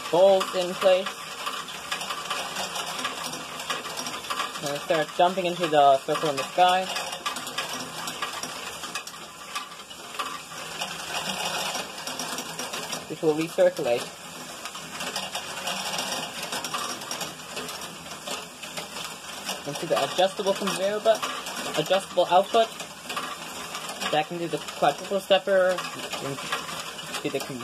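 Motors in a toy machine whir steadily.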